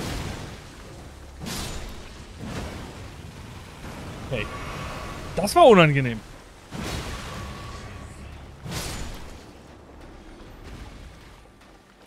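Heavy footsteps splash through shallow water.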